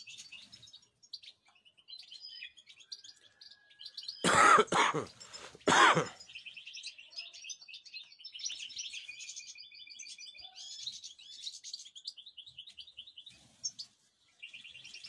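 Small birds chirp rapidly and steadily close by.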